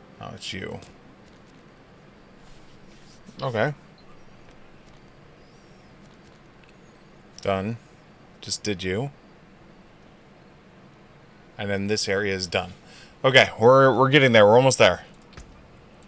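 A young man speaks casually into a nearby microphone, in short bursts.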